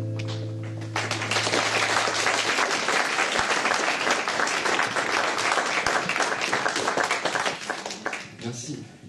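An audience claps and cheers.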